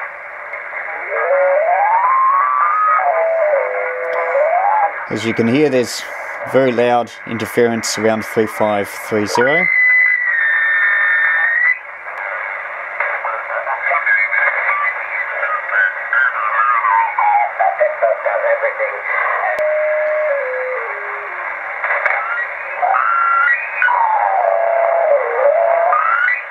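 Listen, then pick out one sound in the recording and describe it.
Whistling tones from a radio receiver glide up and down as the tuning changes.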